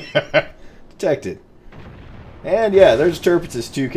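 Heavy naval guns fire with a deep boom.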